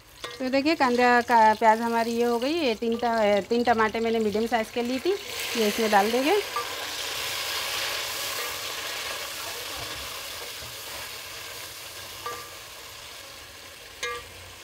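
A wooden spatula stirs food in a metal pot.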